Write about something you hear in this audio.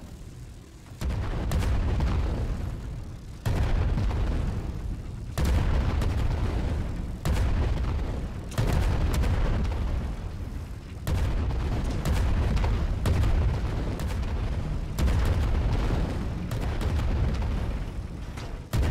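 Shells explode against an airship with deep blasts.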